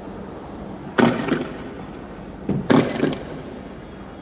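Smoke canisters go off outdoors with sharp bangs that echo briefly.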